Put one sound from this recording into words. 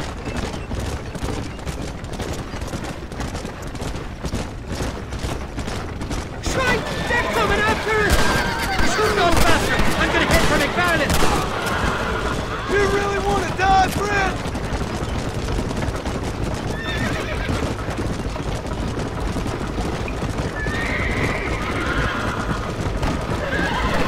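Horse hooves clop steadily on the dirt.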